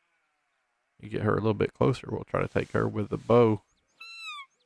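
A duck call quacks loudly several times in quick bursts.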